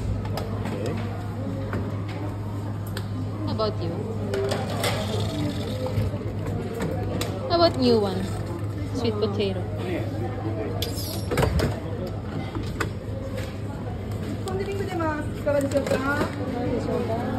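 Plastic tongs click and tap against a tray and food packets.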